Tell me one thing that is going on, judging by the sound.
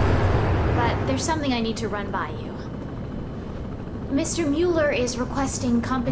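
A young woman speaks quietly and calmly.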